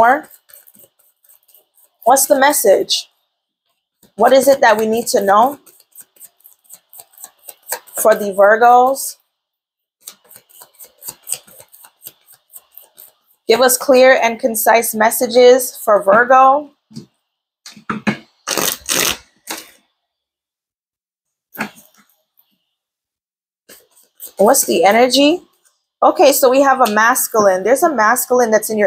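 Playing cards rustle and tap as hands shuffle them.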